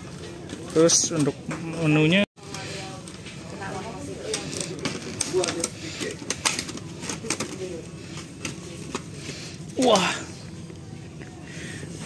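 Thin plastic container lids crinkle and click as they are handled.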